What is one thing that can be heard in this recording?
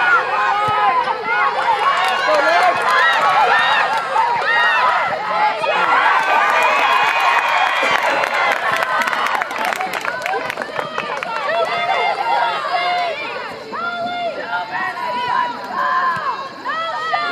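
A group of young women cheer and shout loudly nearby.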